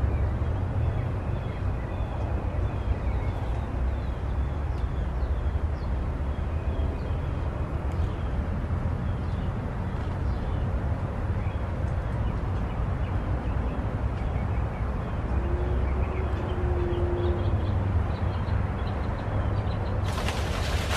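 Wind blows outdoors and rustles leaves.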